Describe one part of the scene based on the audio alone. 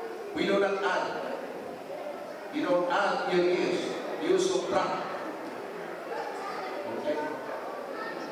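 An older man speaks with animation into a microphone, heard through loudspeakers.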